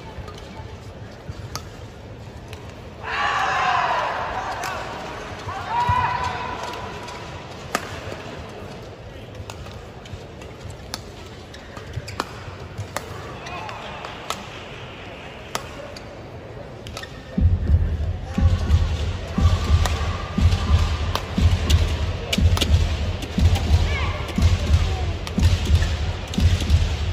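Rackets strike a shuttlecock back and forth in a sharp rally.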